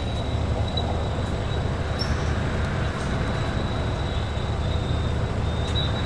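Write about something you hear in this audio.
A bus engine rumbles low and steady while driving.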